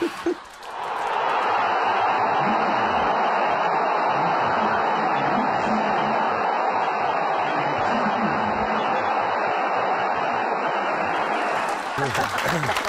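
A stadium crowd roars loudly and steadily.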